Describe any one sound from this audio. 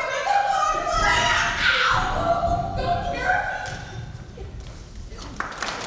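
A young woman speaks with animation in a large echoing hall.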